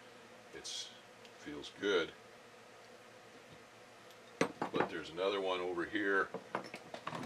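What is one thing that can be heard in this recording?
Metal parts clink and scrape against each other.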